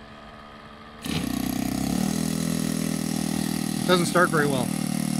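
A small model plane engine starts and runs with a steady buzz.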